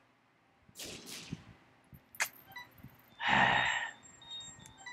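Short video game sound effects chime as items are picked up.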